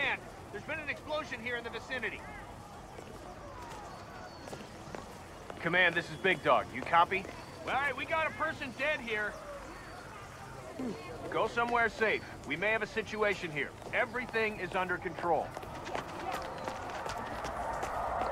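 Footsteps walk on stone paving.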